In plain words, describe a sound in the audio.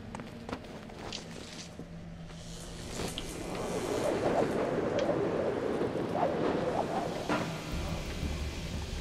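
Rushing air roars during a long fall.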